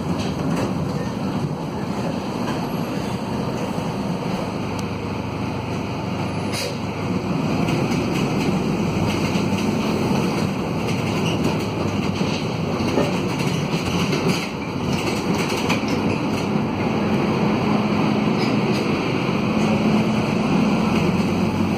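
A diesel minibus engine drones from inside the cabin as the minibus accelerates.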